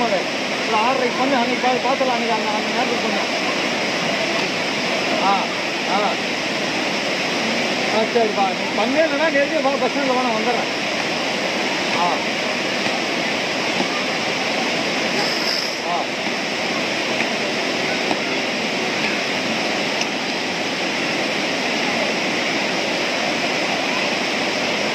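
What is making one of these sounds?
A river rushes steadily over rocks nearby.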